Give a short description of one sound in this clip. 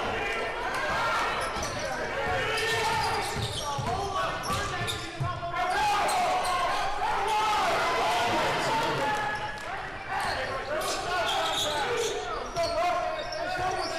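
A basketball bounces on the wooden floor.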